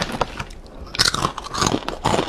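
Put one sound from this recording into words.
A young woman crunches crispy snacks.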